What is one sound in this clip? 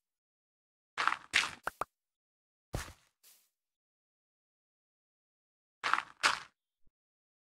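Blocks crack and crumble as they are broken.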